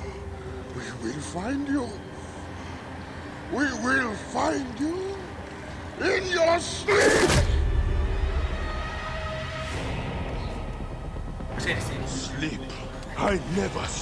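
A man speaks in a strained, threatening voice close by.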